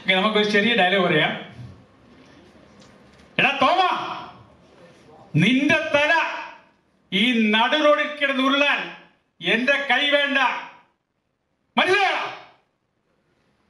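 A middle-aged man speaks calmly into a microphone over loudspeakers, pausing between phrases.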